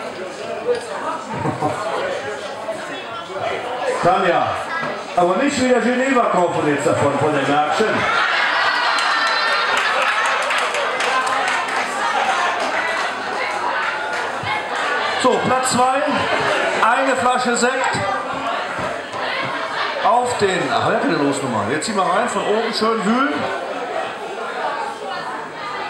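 A crowd chatters and laughs.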